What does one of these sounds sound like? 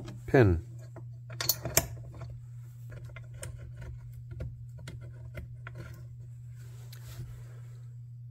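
Metal parts clink and scrape softly as they are handled.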